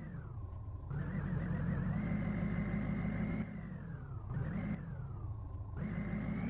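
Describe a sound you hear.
A truck engine revs up and down steadily.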